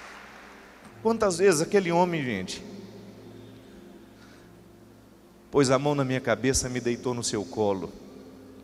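A man speaks with feeling into a microphone.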